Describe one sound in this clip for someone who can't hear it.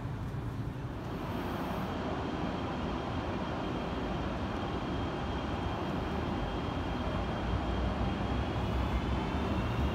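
A parked train hums steadily in a large echoing station.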